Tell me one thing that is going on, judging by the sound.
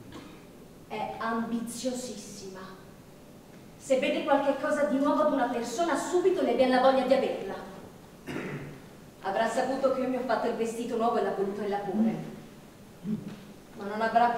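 A young woman reads out calmly through a microphone in a large hall.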